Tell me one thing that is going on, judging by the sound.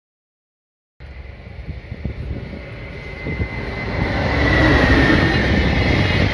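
An electric freight locomotive approaches and passes, hauling container wagons.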